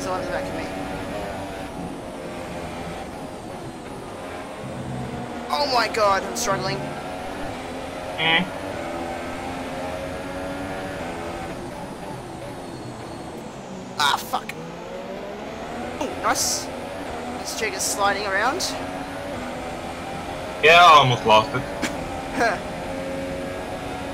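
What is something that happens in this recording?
A racing car engine whines and revs up and down through the gears.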